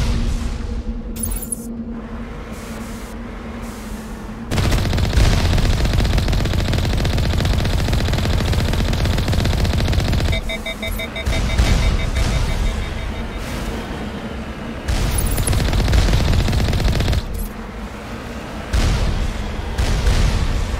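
A heavy vehicle engine rumbles as it drives over rough ground.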